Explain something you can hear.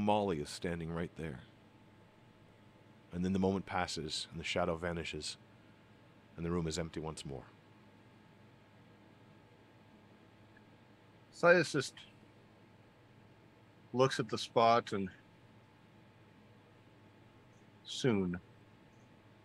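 A middle-aged man speaks calmly into a close microphone over an online call, in short bursts with pauses.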